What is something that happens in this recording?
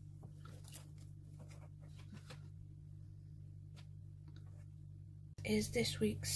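Fingers tap and brush against paper pages.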